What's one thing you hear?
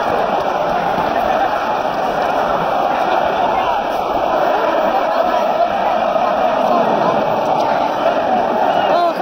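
A large stadium crowd chants and sings loudly all around.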